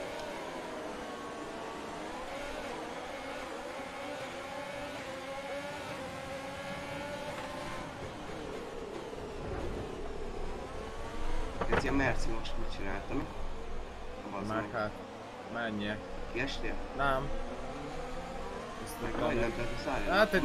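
A racing car engine whines and revs up and down.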